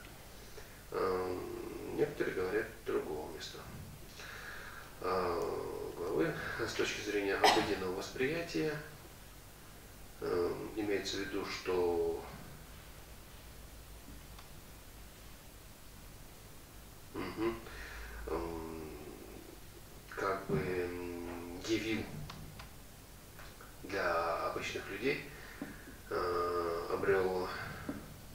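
A man reads aloud calmly through a microphone, in slow phrases with pauses.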